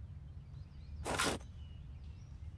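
A blade slices through a leather strap.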